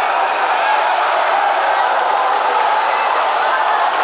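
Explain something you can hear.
A man speaks loudly through a microphone over loudspeakers.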